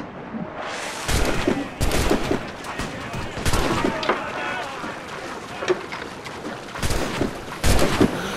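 Cannons boom in rapid volleys.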